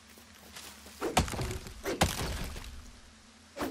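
An axe chops into a tree trunk.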